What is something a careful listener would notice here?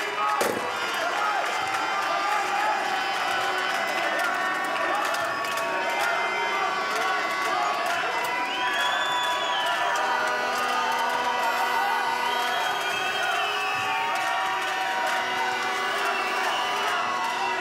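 A handball bounces on the court.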